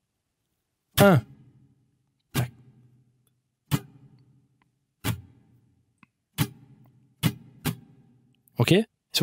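An acoustic guitar is strummed in single, ringing strokes.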